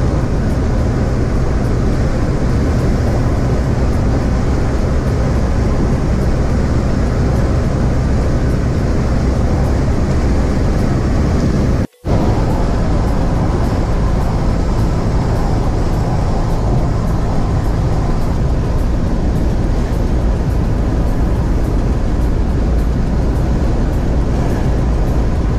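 Car tyres roar steadily on a highway, heard from inside the car.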